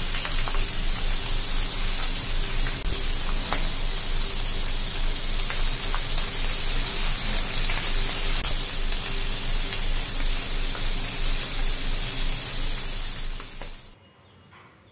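Fish sizzle and crackle loudly in hot oil.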